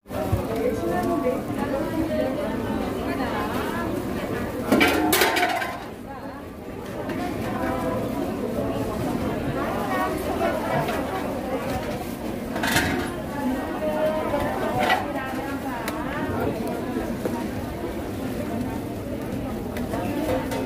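Gloved hands squelch and slap through soft dough.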